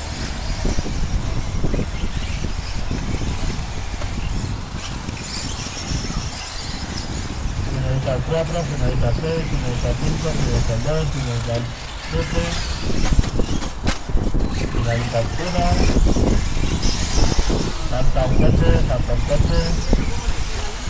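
Radio-controlled short-course 4x4 trucks race on a dirt track.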